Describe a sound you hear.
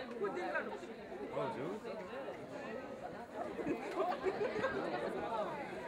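Several people talk and call out together in a large hall.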